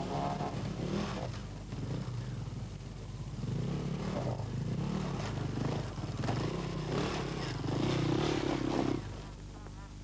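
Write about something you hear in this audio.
A dirt bike engine revs hard and sputters up close.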